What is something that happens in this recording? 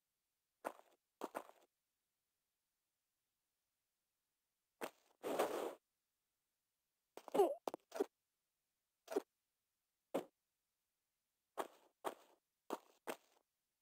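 Footsteps thud on a stone floor.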